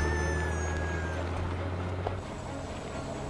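A car engine hums as a car drives past.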